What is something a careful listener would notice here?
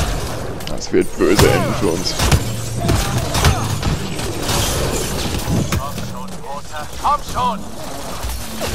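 An explosion booms.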